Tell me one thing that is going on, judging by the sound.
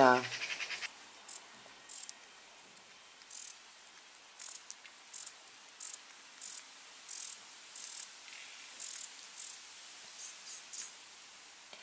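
Potatoes rustle and knock softly as they are lifted from loose soil.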